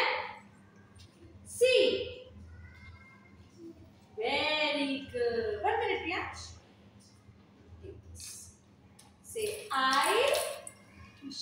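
A young woman speaks gently and clearly to a child, close by.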